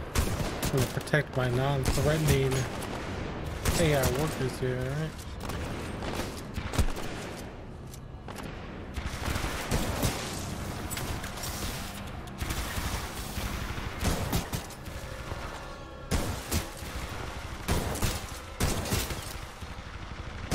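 Gunfire bursts in rapid, sharp shots.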